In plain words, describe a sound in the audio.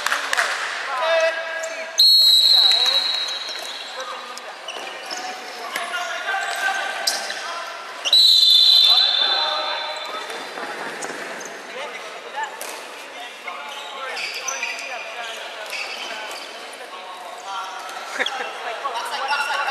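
Young players shout and call out to each other across the hall.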